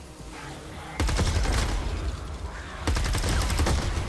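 Gunfire crackles in rapid bursts.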